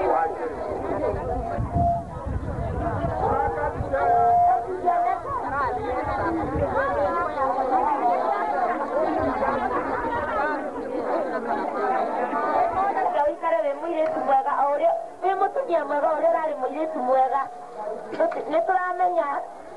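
A crowd of women chatter and call out nearby.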